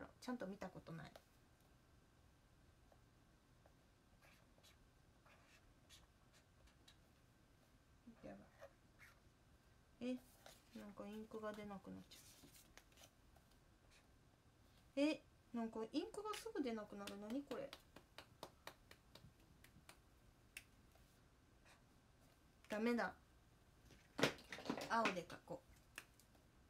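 A young woman speaks softly in short bursts, close by.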